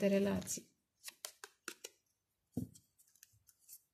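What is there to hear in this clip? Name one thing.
Playing cards slide and tap together as they are shuffled by hand.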